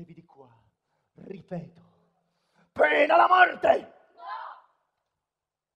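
A man speaks loudly on a stage, heard through loudspeakers in a large hall.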